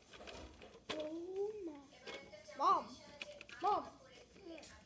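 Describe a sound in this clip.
A young child calls out in short, high bursts close by.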